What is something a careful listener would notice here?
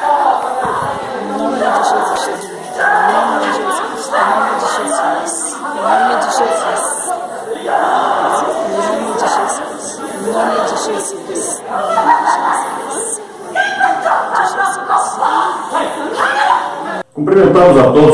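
A man prays aloud with animation in an echoing room.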